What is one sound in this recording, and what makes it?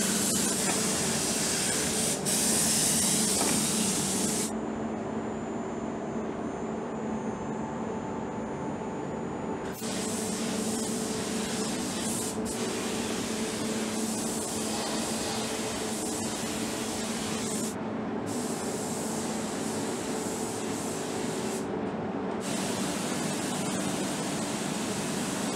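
A spray gun hisses steadily in short bursts.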